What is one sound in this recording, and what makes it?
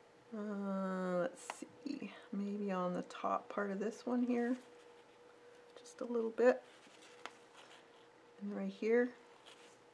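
A paintbrush softly swishes across paper.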